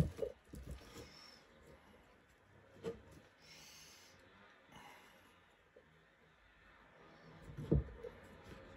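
A plastic buckle clicks and taps lightly.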